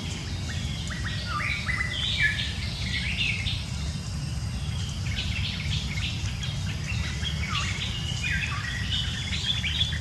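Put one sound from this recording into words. Dry leaves rustle as small monkeys scamper across the ground.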